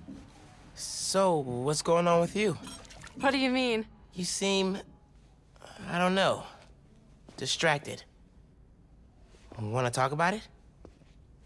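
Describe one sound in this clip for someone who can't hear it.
A young man speaks calmly and softly close by.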